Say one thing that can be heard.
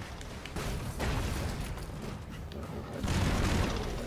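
An explosion booms and crackles.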